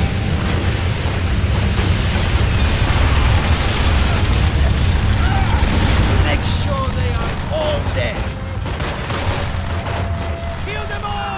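Heavy gunfire and explosions rumble and crackle in the distance.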